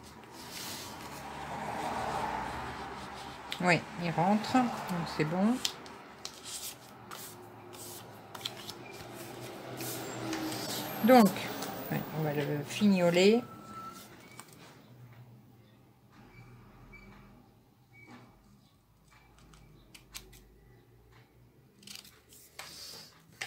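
Stiff paper rustles and taps softly as hands handle it.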